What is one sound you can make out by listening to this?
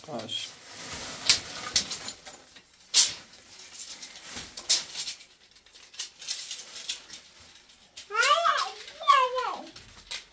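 A metal tool clicks and clinks in a person's hands.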